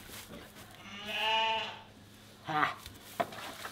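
A lamb bleats loudly close by.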